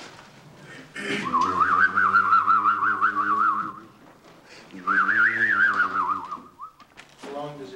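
A man sings in long, wavering notes nearby.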